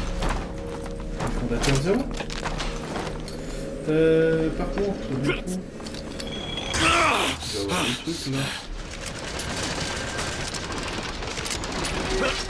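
A young man talks casually into a microphone, close by.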